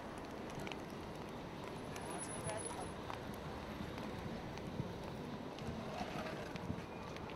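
Footsteps tap on pavement as people walk.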